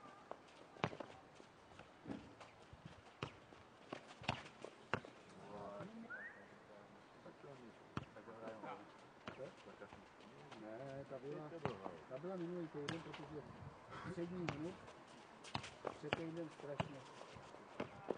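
A ball thuds sharply as players kick and bounce it.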